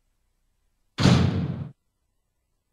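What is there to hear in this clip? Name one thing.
A heavy door opens with a loud scrape.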